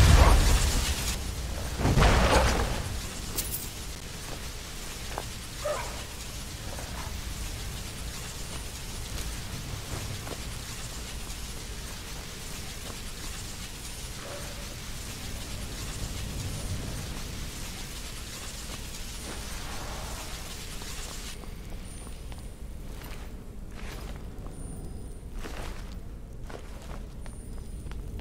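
A low rumbling ambience drones on.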